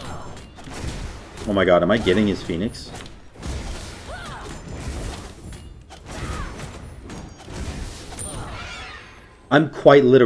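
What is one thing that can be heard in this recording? Game sound effects clash and whoosh.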